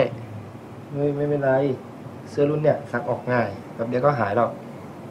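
A second young man answers calmly up close.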